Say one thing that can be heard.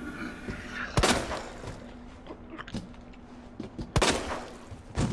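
A pistol fires loud shots that echo briefly.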